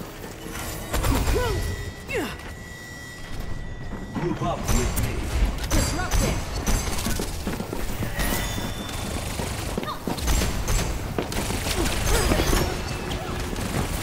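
Heavy thumps and explosions boom.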